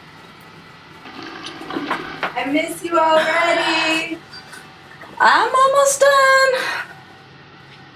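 A young woman nearby calls out loudly in a drawn-out, sing-song voice.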